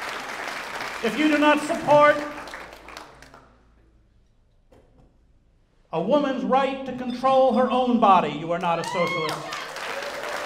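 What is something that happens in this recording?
An elderly man speaks into a microphone over loudspeakers in a large echoing hall.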